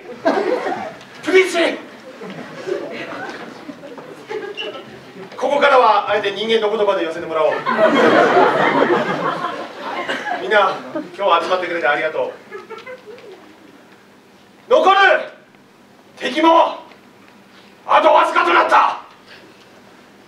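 A man speaks with animation through a microphone in a hall.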